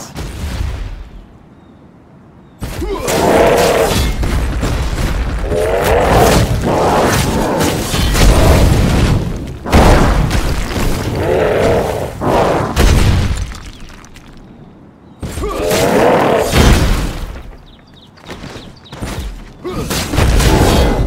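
Weapons clash and thud in a fight with heavy impacts.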